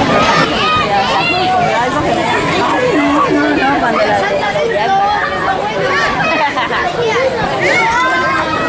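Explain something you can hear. Children shriek with excitement.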